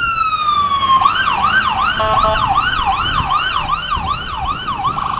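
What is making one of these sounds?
A siren yelps rapidly up and down.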